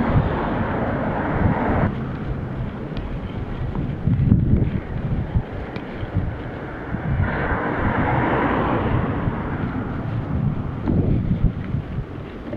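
Wind buffets and rumbles against a microphone outdoors.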